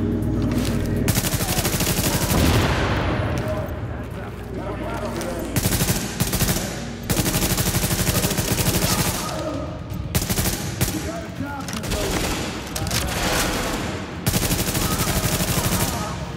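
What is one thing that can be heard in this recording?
An automatic rifle fires in rapid bursts.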